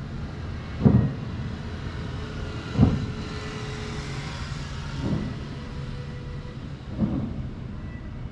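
Fireworks boom in the distance across open water, each bang rolling away.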